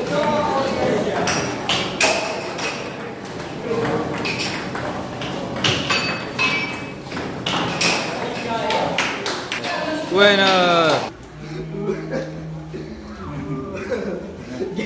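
Teenage boys talk and call out nearby.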